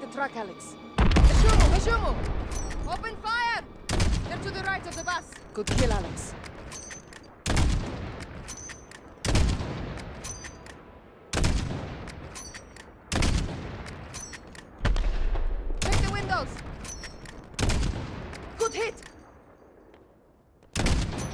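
A sniper rifle fires loud shots again and again, each echoing away.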